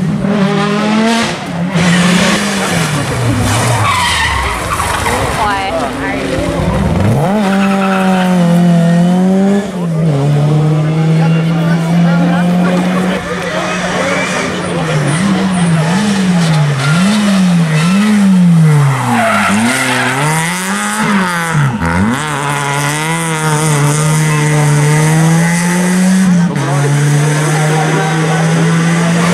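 A rally car engine revs hard, rising and falling in pitch as it changes gear.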